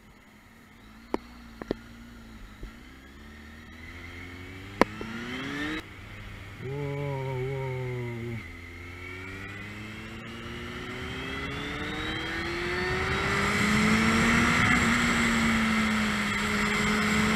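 A motorcycle engine hums and rises in pitch as it speeds up, dropping after each gear change.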